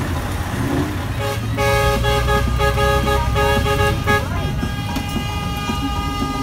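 A truck's diesel engine rumbles steadily.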